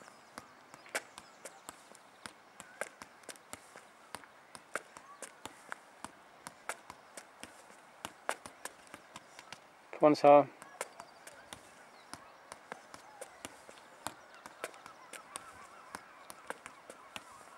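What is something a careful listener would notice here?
A football is juggled on a foot, giving quick soft taps.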